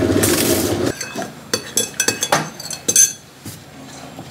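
A spoon clinks against a ceramic mug while stirring.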